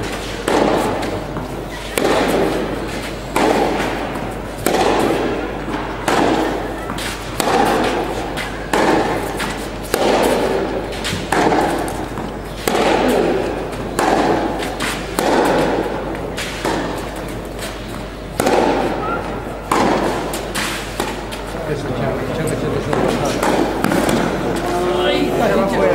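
Tennis balls are struck back and forth by rackets in a rally, echoing in a large hall.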